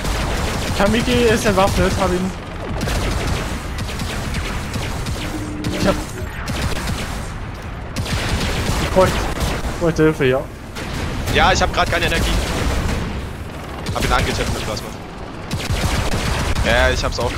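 Laser weapons fire with a steady electric buzz.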